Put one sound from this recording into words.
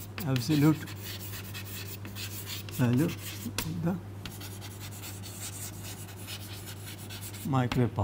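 Chalk scratches and taps on a board.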